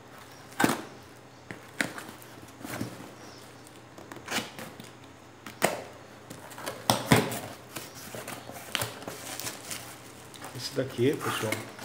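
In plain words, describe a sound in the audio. Tools clatter and knock on a hard surface.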